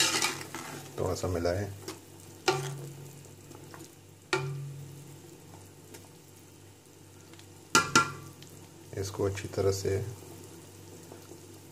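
A pot of stew bubbles and simmers.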